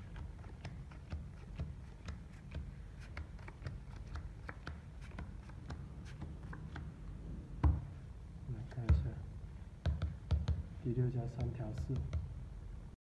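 Playing cards are dealt and snap softly onto a table.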